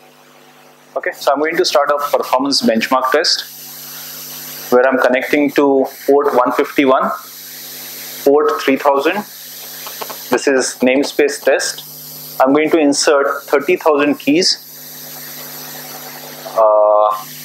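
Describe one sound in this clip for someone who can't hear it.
A man talks calmly, explaining.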